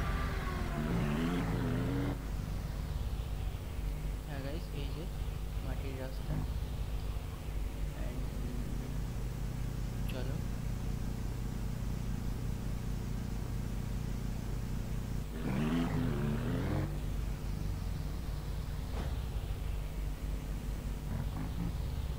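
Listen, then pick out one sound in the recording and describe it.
A small vehicle's engine hums steadily as it drives along.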